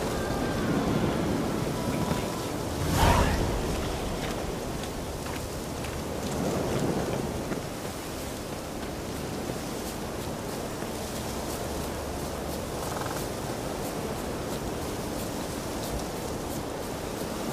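Footsteps run through grass and brush.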